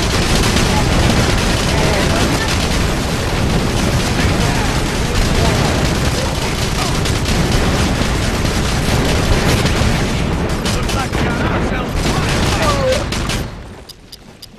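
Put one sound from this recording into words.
Gunfire rattles and explosions boom.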